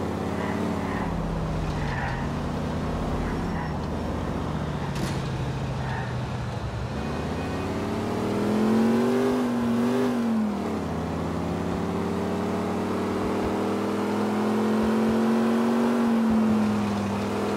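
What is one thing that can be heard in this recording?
A car engine hums steadily and revs up and down as it drives.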